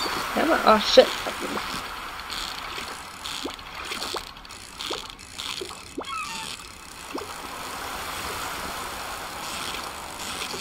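A fishing reel whirs as a line is reeled in with short squeaky tugs.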